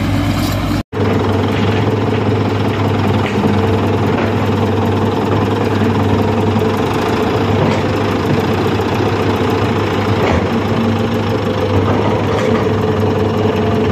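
A motor grader's diesel engine idles.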